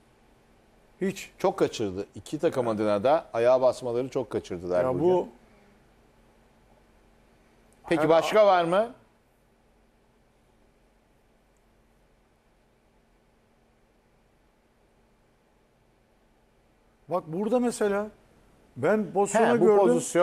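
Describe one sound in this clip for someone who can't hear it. A middle-aged man speaks calmly into a close microphone, in bursts with pauses.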